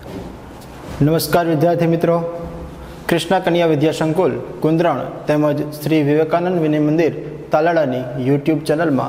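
A man speaks calmly into a clip-on microphone.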